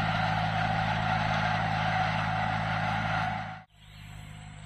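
A tractor engine hums steadily nearby.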